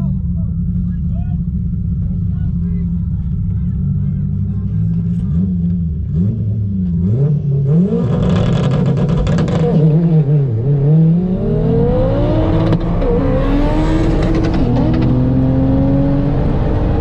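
A car engine hums from inside the car, rising and falling in pitch as it speeds up and slows down.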